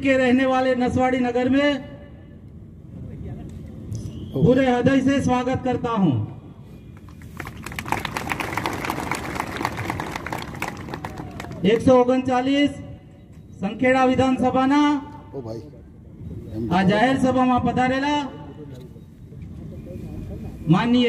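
A man speaks loudly through a microphone and loudspeakers, in forceful bursts.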